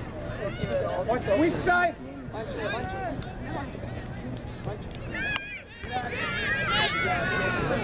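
Young players and spectators shout and cheer across an open field.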